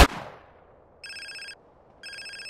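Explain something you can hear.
A phone rings with a bright electronic trill.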